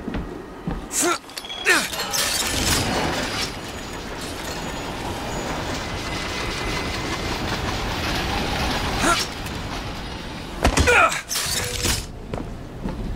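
A metal hook rushes and screeches loudly along a rail.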